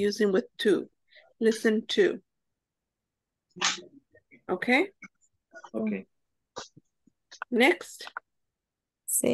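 A woman speaks clearly in short phrases through an online call.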